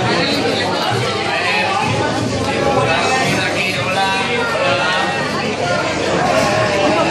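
A crowd of men and women chatter indoors.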